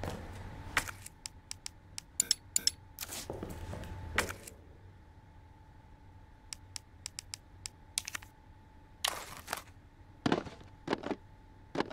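Short menu clicks and beeps sound one after another.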